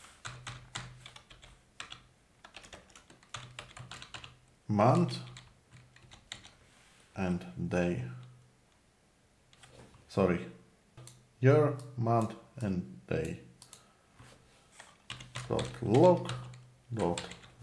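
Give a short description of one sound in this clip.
Keys on a keyboard click rapidly as someone types.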